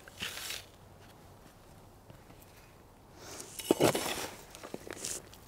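Gravel pours into a pot with a soft rattle.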